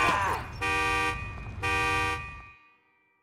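A car horn honks twice.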